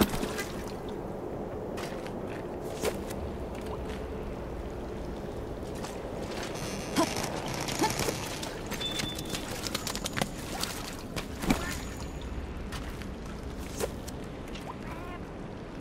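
Water rushes steadily.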